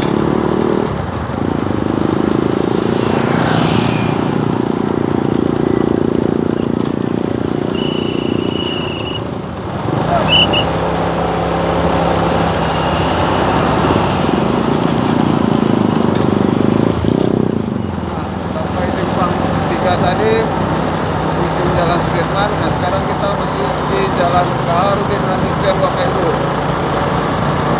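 A motorcycle engine hums steadily while riding along a busy road.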